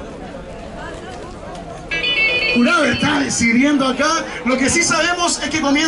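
A young man raps forcefully through a microphone.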